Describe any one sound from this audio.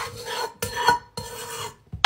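A spoon scrapes against a pot.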